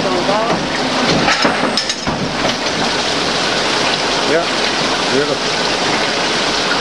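Coolant splashes and hisses over a spinning part.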